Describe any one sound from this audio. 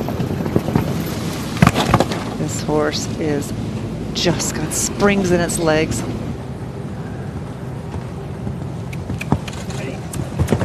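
Horse hooves thud on soft sand.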